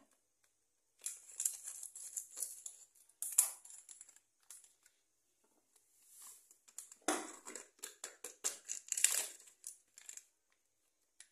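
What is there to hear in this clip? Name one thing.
A plastic packet crinkles and rustles.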